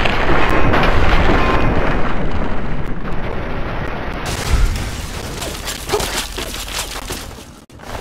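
A rifle fires loud shots.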